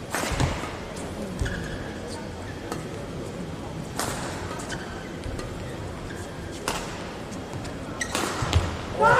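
A racket sharply hits a shuttlecock back and forth in a large echoing hall.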